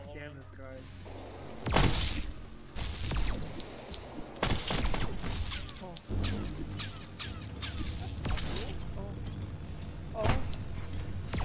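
Shots zap and whine rapidly in a game.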